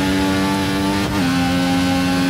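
A racing car engine shifts up a gear with a brief dip in pitch.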